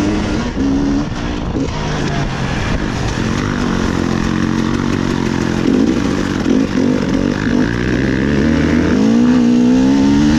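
A dirt bike engine revs hard and changes pitch up close.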